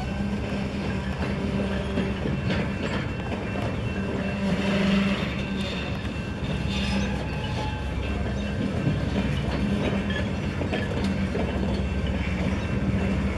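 A freight train rumbles past with wheels clattering and squealing on the rails.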